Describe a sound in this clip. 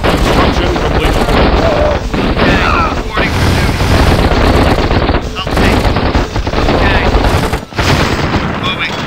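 Gunfire rattles steadily in a battle.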